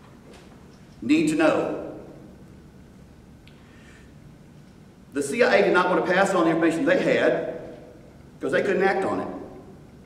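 An elderly man speaks steadily into a microphone, with long pauses.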